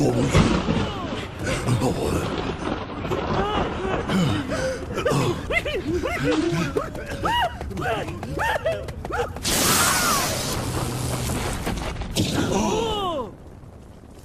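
Several men cry out in alarm.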